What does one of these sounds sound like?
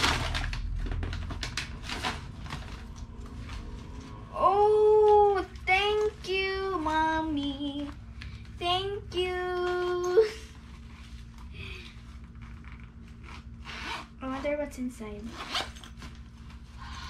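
A young girl speaks close by with excitement.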